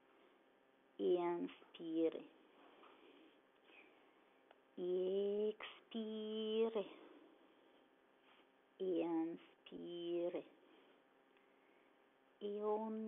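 A woman speaks calmly and slowly, close by, in short phrases with pauses.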